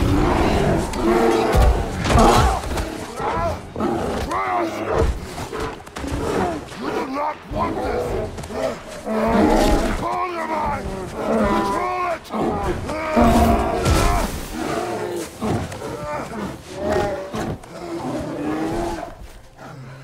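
A bear roars and growls loudly.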